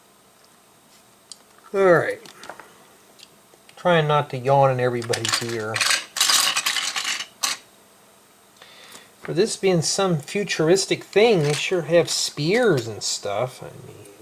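Small plastic pieces click and rattle as a hand handles them.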